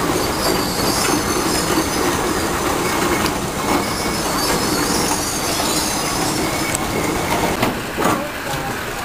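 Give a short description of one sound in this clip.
A steam roller chugs and rumbles past on the road.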